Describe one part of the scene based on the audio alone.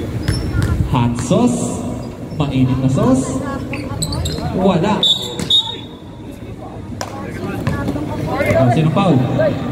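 Men shout and call out loudly in the open air.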